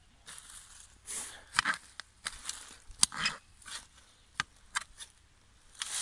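A small shovel scrapes and digs into soil.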